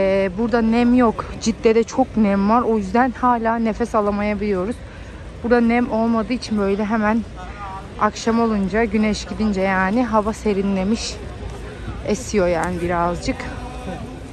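A man chants loudly in a steady, sing-song voice close by.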